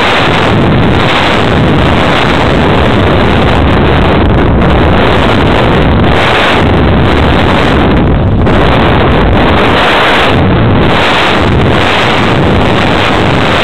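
Wind roars loudly across the microphone, surging and easing.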